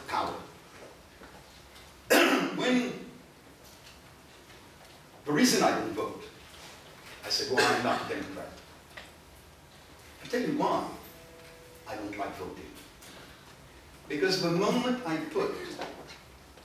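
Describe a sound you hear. An elderly man speaks in bursts with pauses, in a room with some echo.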